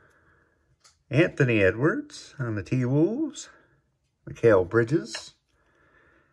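Trading cards slide against each other as they are shuffled.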